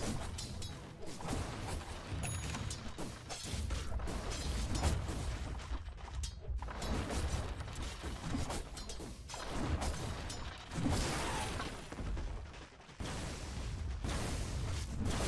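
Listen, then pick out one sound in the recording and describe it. Video game combat sounds clash and crackle with bursts of spell effects.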